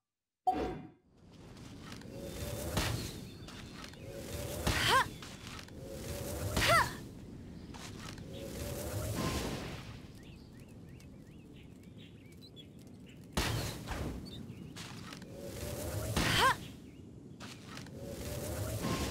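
Flaming arrows whoosh up and burst with fiery bangs.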